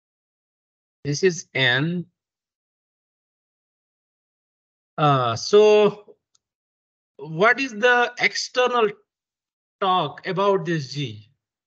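A young man speaks calmly through an online call, pausing between phrases.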